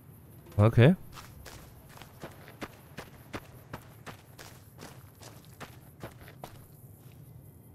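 Footsteps crunch steadily on dry gravel.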